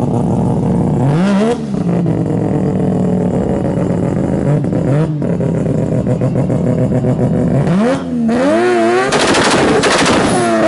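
A car engine revs up sharply several times.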